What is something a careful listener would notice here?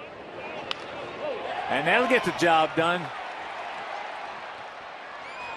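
A large crowd cheers.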